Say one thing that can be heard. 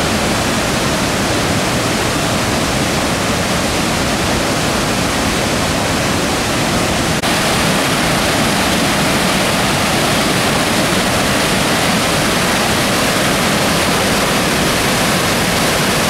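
A waterfall roars loudly as rapids rush over rocks.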